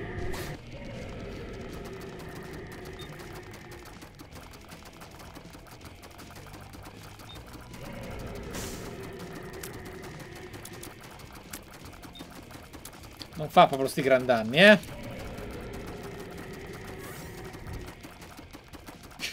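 Video game sound effects pop and splash steadily.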